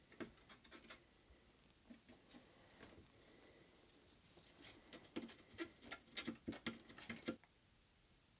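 A small metal tool scrapes and clicks against hard plastic.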